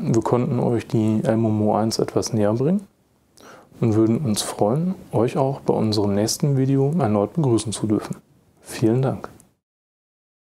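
A man speaks calmly into a clip-on microphone close by.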